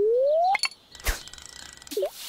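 A bobber plops into water.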